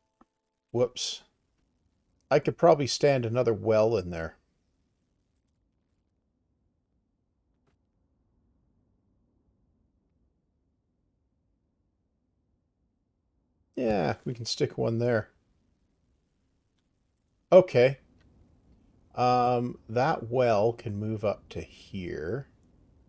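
A man talks calmly close to a microphone, in short bursts with pauses.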